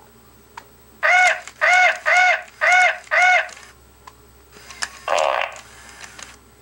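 A toy parrot squawks in short, evenly repeated bursts.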